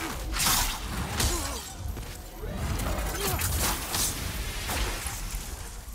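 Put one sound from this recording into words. A magic bolt crackles and whooshes.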